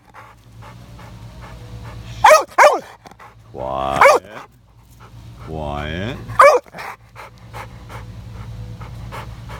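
A dog pants quickly and steadily.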